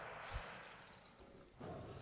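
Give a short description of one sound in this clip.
A magic spell bursts with a shimmering whoosh.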